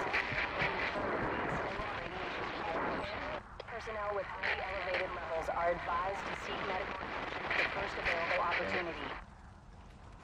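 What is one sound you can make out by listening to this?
Fire roars and crackles from burning wreckage.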